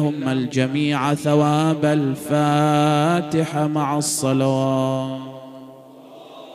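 A man chants in a loud, drawn-out voice through a microphone, echoing in a large hall, then falls silent.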